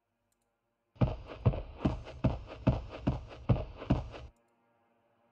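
Footsteps sound on a floor.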